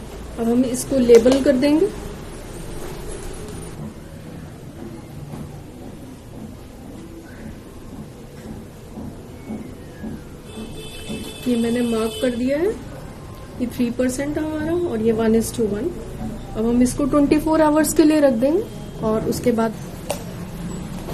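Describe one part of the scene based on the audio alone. Plastic container lids tap and rustle as hands handle them.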